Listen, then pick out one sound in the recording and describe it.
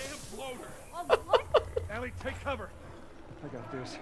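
A young man laughs.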